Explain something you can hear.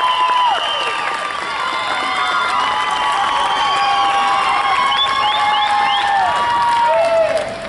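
A mariachi band plays a lively tune outdoors, with trumpets and violins.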